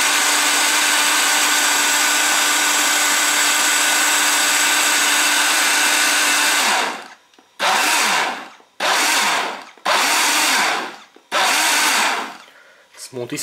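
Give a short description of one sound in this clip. A blender whirs loudly, then runs in several short bursts.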